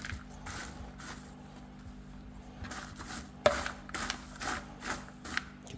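A hand rustles and crunches through dry popcorn.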